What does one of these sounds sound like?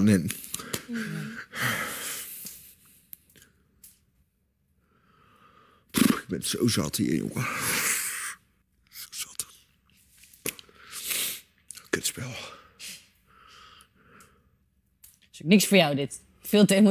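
A man talks in a low, upset voice nearby.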